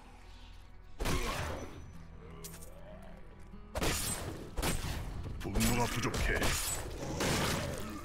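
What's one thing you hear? Spells burst with crackling blasts.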